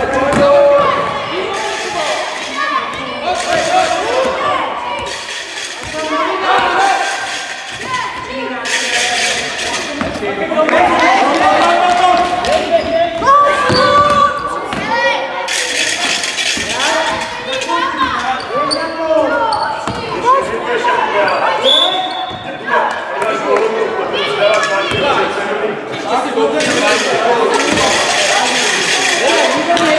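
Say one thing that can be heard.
Children shout and call out throughout a large echoing gym.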